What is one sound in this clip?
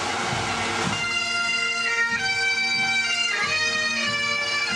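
Bagpipes play a loud, steady tune.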